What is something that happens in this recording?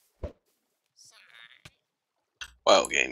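A cartoon creature gives a short chirping cry.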